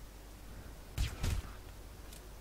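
A pistol fires a muffled shot.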